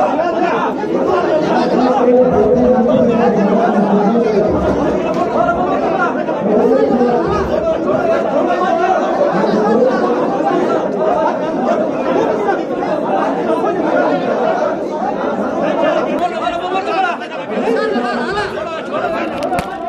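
A crowd of men shout and argue loudly all at once in a packed room.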